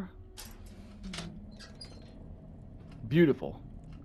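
A metal safe door unlatches and swings open.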